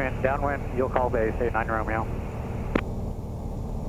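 A man speaks briefly over a crackly headset radio.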